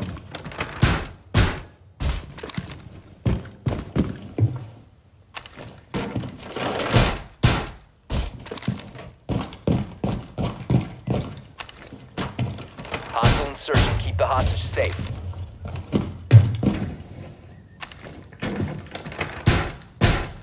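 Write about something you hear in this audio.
Wooden boards bang and rattle as a barricade is put up.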